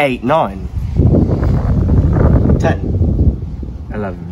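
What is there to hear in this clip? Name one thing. Wind buffets outdoors.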